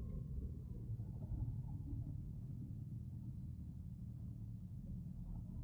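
Wind rumbles against a helmet.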